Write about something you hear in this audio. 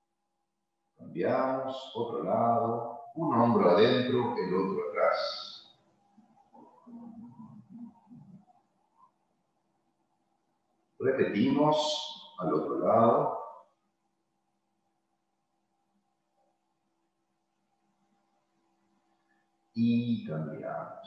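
An older man speaks calmly, heard through a microphone on an online call.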